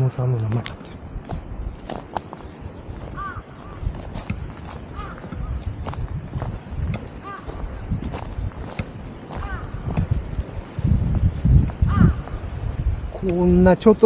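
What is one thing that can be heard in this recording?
Footsteps crunch steadily on a gravelly path.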